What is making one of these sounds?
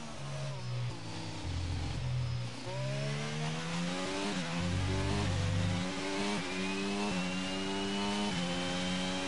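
A racing car engine revs high and climbs through the gears, with sharp drops at each gear change.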